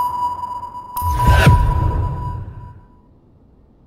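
A stun grenade goes off with a loud, booming bang.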